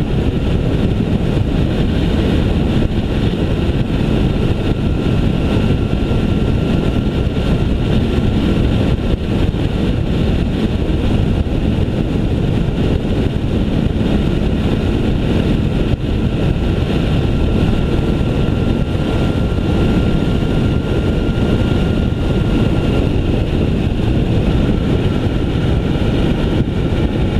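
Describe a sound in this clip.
Wind roars steadily past the microphone on a moving motorcycle.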